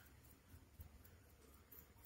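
A sponge dabs softly against a glass bottle.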